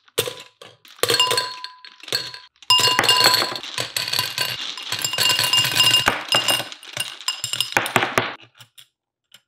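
Plastic balls rattle and clatter as they pour into a plastic container.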